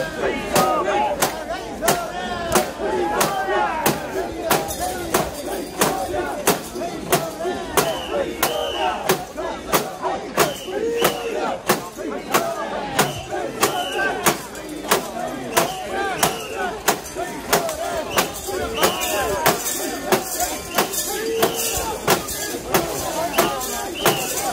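A large crowd of men chants and shouts rhythmically outdoors.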